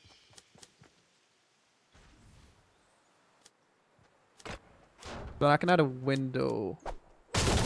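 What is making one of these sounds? Wooden walls snap into place with quick clunks.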